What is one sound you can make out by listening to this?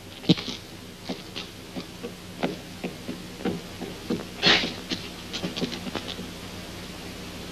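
Small objects knock and clatter.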